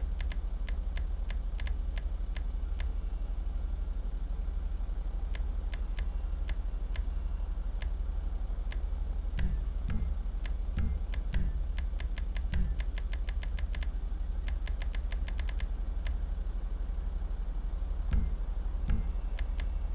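A car engine idles with a low steady rumble.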